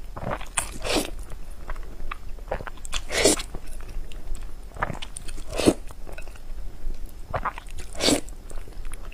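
A young woman slurps noodles loudly, close to a microphone.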